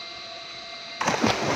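A fishing net splashes into water.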